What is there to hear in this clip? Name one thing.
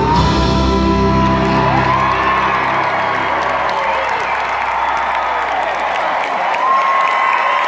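A band plays loudly in a large echoing arena.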